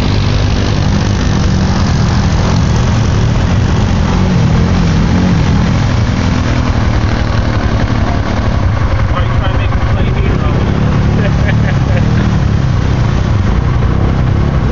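Muddy water splashes and sprays around churning tyres.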